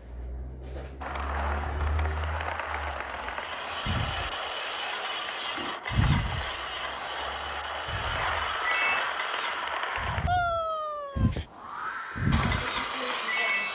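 A roller coaster rumbles and rushes along a track in a video game.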